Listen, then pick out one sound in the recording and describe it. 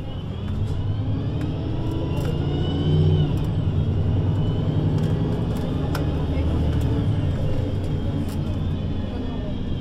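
A bus engine idles with a low, steady rumble close by.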